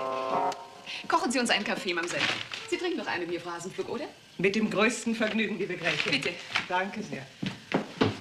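An older woman answers in a lively voice.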